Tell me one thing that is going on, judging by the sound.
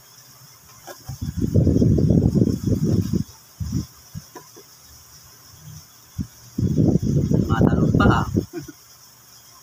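A knife scrapes and chops on a plastic cutting board.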